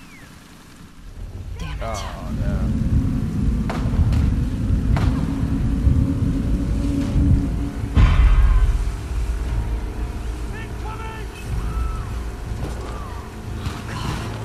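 A boat's outboard motor rumbles steadily.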